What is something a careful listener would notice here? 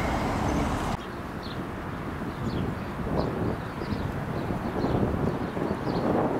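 A tram rumbles along its rails as it approaches.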